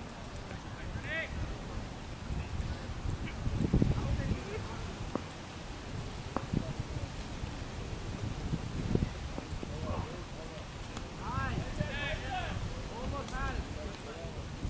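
Young men call out to each other across the field.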